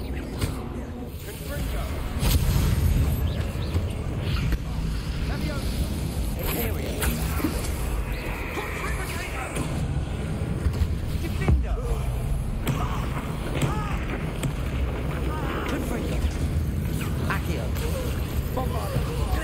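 Magic spells crackle and burst in quick succession.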